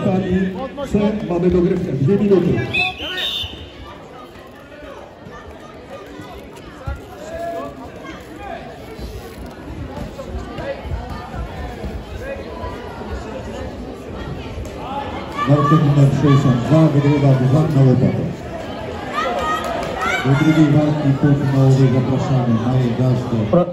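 A man shouts commands loudly in a large echoing hall.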